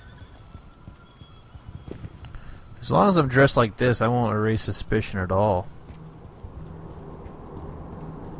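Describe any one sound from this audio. Boots run on wet pavement.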